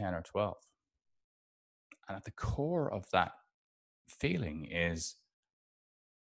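A middle-aged man speaks with emphasis into a close microphone, in short bursts with pauses.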